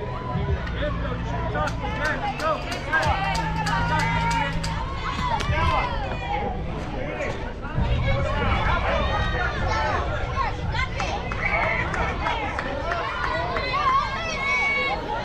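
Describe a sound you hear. A group of young girls cheers and chants in the open air.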